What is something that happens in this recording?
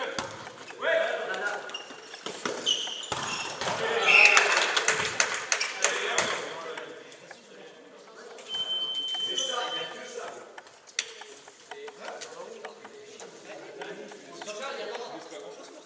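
Sneakers squeak on the hall floor.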